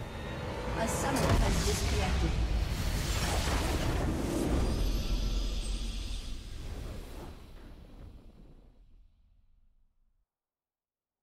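A game's victory fanfare swells with a deep booming chime and fades away.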